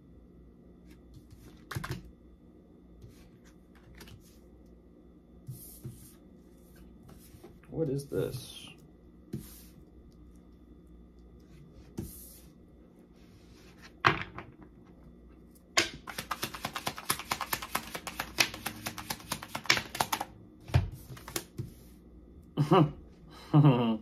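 Hands rustle and knock softly on a surface now and then.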